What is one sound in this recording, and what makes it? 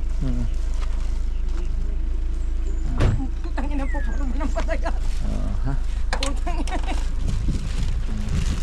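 Women talk nearby outdoors with animation.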